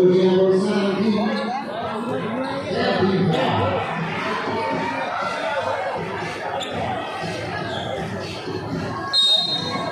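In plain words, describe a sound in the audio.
A large crowd cheers and chatters loudly in a big echoing hall.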